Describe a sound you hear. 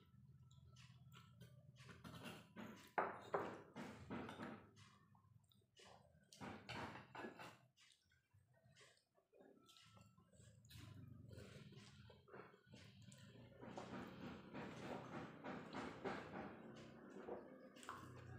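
Fingers scrape food on plates.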